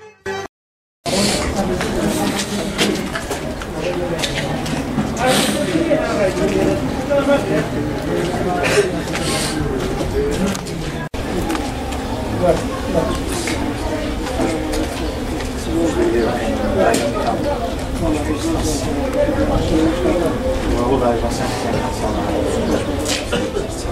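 Men talk with animation close by, several voices overlapping.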